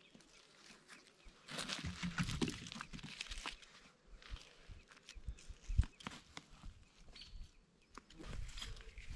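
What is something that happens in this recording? Dry leaves and twigs rustle and crackle close by.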